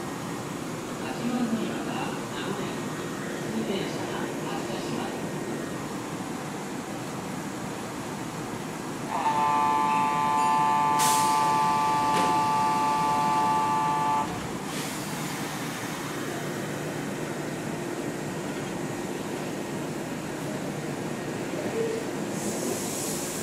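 A stopped train hums steadily nearby.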